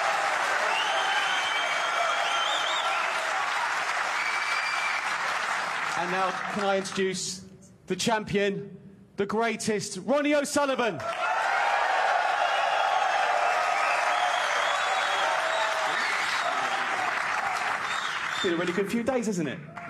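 A large crowd applauds and cheers in a big hall.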